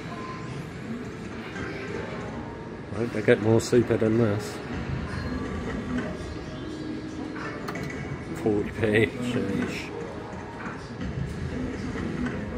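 A slot machine plays a bright electronic jingle as its reels spin.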